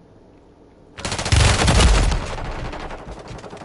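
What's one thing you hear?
Gunfire bursts loudly in rapid shots.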